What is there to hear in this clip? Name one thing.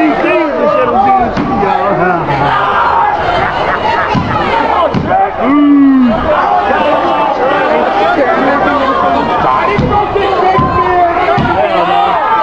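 Bodies thud onto a wrestling mat.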